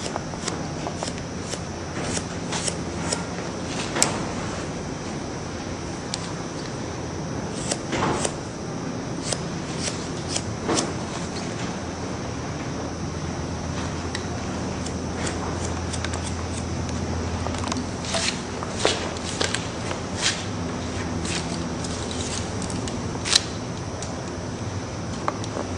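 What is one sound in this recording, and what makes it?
Scissors snip through hair in quick, crisp clicks.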